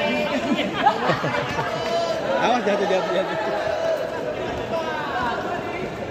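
A crowd screams and shouts excitedly nearby.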